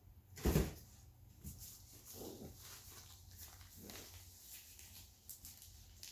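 Plastic wrapping crinkles and rustles as hands handle a package.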